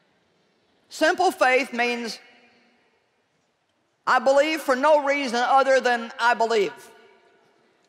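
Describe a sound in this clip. A woman speaks into a microphone with emphasis in a large echoing hall.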